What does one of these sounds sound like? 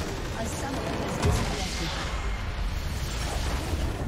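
A game structure explodes with a deep blast.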